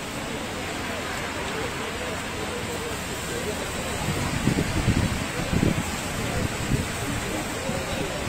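A crowd murmurs in the distance outdoors.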